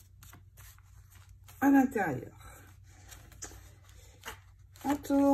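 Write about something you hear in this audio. Paper rustles and slides softly as pages are handled and turned.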